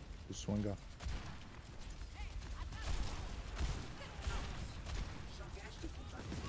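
Gunshots fire in quick bursts in a video game.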